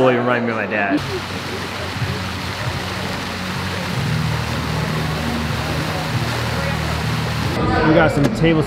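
Fountain jets of water splash and rush steadily.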